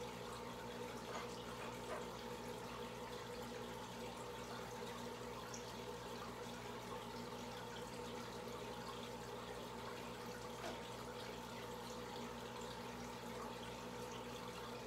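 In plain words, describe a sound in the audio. Air bubbles from an air stone stream and burble up through aquarium water.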